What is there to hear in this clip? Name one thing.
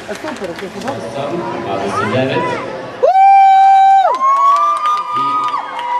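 Young girls cheer and shout excitedly close by.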